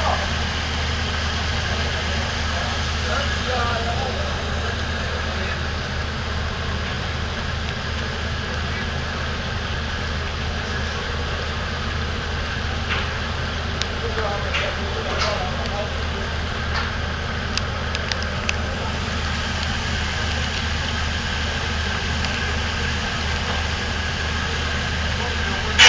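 A boat engine rumbles steadily close by.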